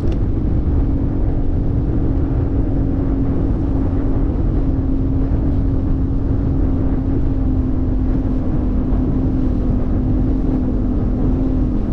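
The hull slaps and thumps over small waves.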